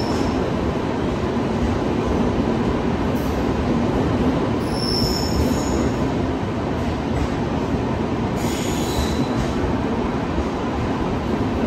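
A train rumbles steadily along a station platform.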